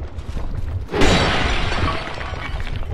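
A short rustling burst sounds as an item is picked up.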